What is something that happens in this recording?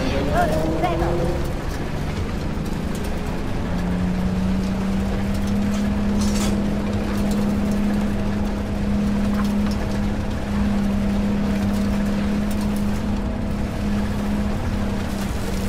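A tank engine rumbles and whines steadily as the tank drives.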